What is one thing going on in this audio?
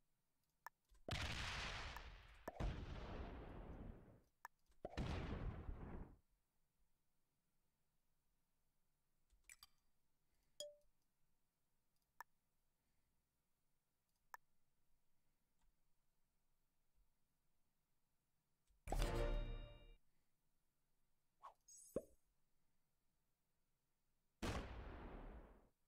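Game sound effects whoosh in short loud bursts.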